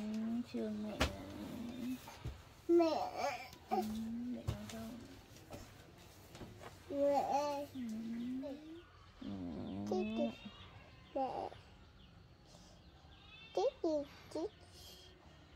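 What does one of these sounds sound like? A young child babbles and coos close by.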